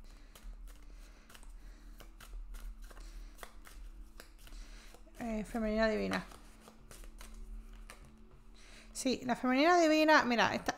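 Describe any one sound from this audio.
Playing cards are shuffled and riffle softly, close by.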